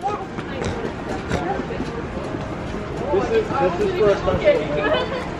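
People chatter and talk nearby outdoors.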